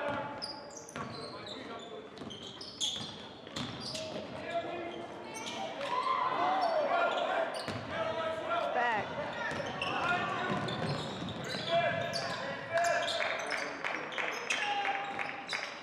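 A basketball bounces on the floor in quick thuds.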